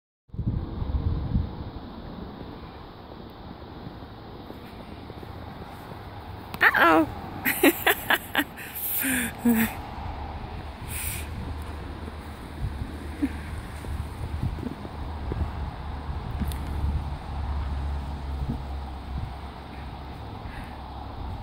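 Paws crunch through snow.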